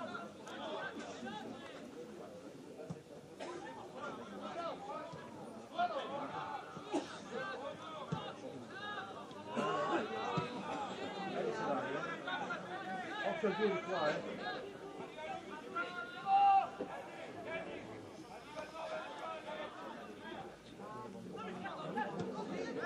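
Young men shout and call out across an open field.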